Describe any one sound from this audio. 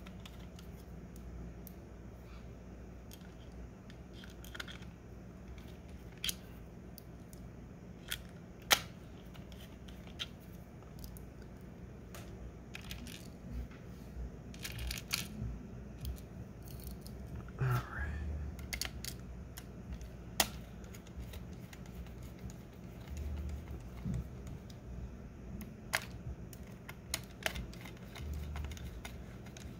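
Hands handle a plastic casing with soft knocks.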